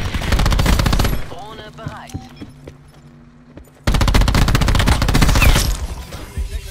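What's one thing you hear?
A heavy gun fires in loud, roaring bursts.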